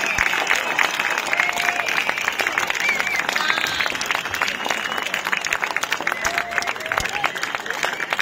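A band plays live music loudly through outdoor loudspeakers.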